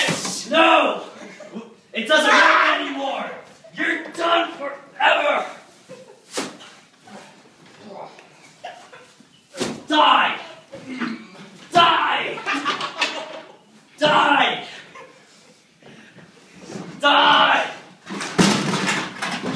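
Young men shout and laugh loudly close by.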